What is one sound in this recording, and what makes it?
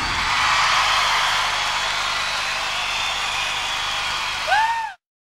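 A large crowd cheers and roars in a vast open space.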